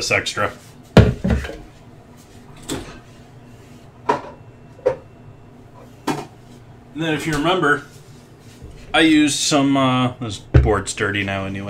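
A plastic container knocks onto a wooden cutting board.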